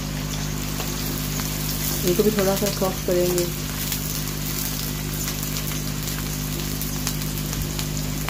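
A wooden spatula stirs and scrapes onions in a pan.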